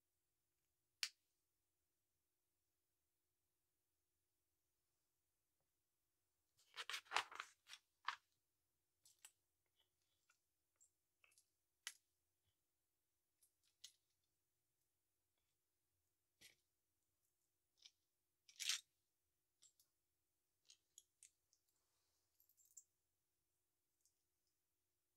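Small plastic bricks click and clatter.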